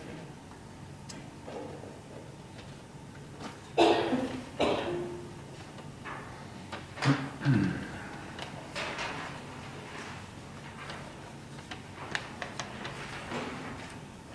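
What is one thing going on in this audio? A marimba is played with mallets, with notes ringing out in a large room.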